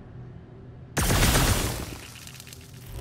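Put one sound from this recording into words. A blaster fires an icy burst with a loud whoosh.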